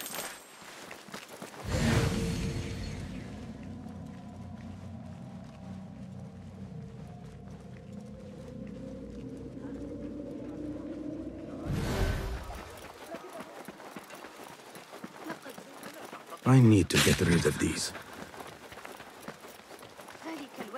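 Footsteps patter quickly on stone and sand.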